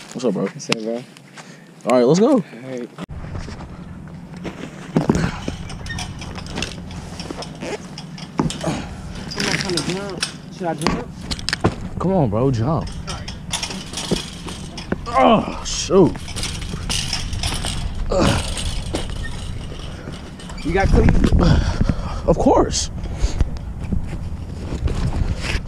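A young man talks and laughs close by.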